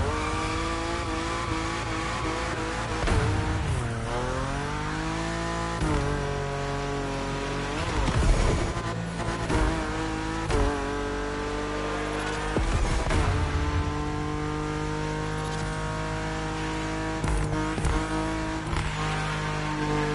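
A racing car engine roars at high revs, rising in pitch as it speeds up and dropping sharply at each gear change.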